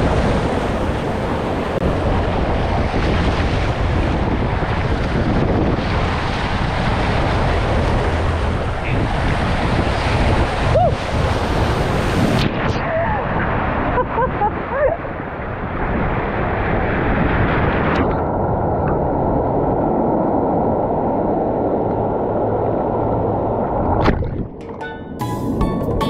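Water rushes and splashes close by, muffled at times.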